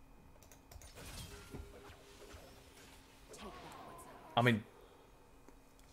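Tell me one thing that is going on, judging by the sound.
Fantasy spell effects whoosh and crackle during a fight.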